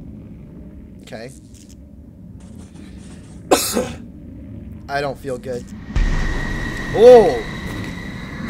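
A young man talks and exclaims in surprise close to a microphone.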